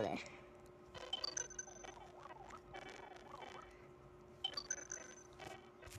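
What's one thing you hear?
A video game's menu blips and chimes as a level is selected.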